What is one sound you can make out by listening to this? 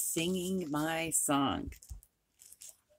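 A woman speaks close to a microphone with animation.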